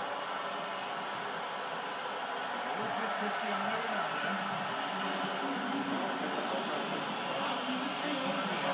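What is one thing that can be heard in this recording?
A stadium crowd roars steadily through a television speaker.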